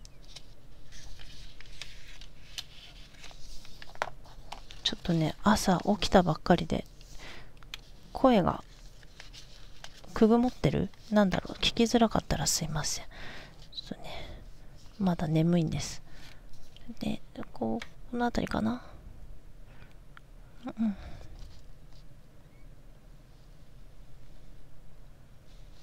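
Paper rustles and crinkles under fingers.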